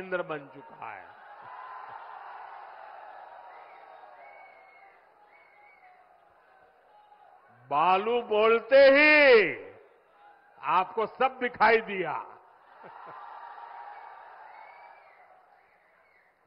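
A large crowd cheers and murmurs in the distance.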